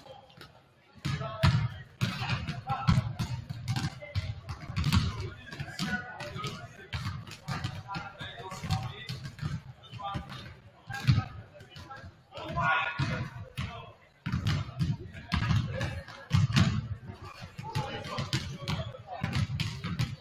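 Basketballs bounce repeatedly on a wooden court.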